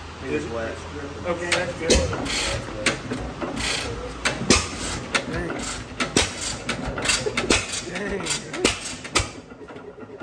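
An old engine coughs and pops as it is cranked by hand.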